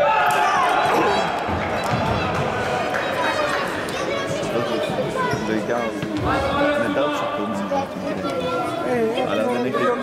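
Men call out and talk across a large echoing hall.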